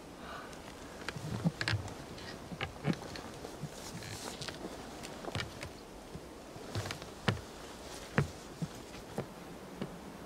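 Footsteps knock on wooden ladder rungs as a boy climbs down.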